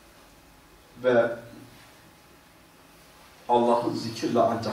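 An elderly man speaks slowly and solemnly into a microphone, with long pauses.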